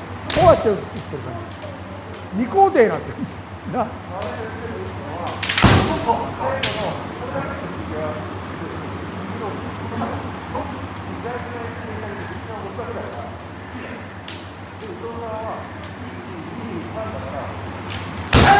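Bare feet stamp on a wooden floor.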